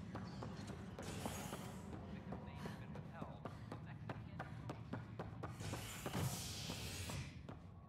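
Quick footsteps tap on a hard metal floor.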